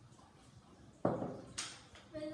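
A bowl is set down with a knock.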